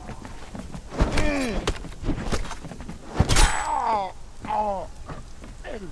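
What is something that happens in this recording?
Weapons strike and clash in a brief fight.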